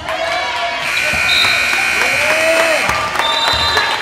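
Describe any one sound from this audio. A loud buzzer sounds.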